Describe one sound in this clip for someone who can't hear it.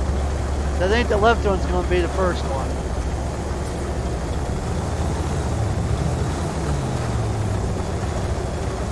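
A spaceship engine hums low and steadily.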